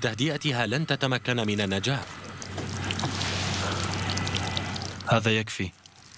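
Water pours and splashes onto the ground.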